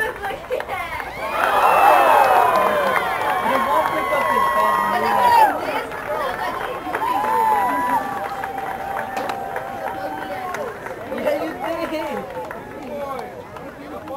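A crowd of children and adults chatters and calls out nearby outdoors.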